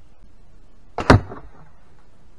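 An arrow strikes a foam target with a sharp thud.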